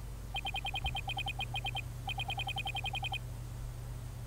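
Rapid electronic blips chatter in quick bursts.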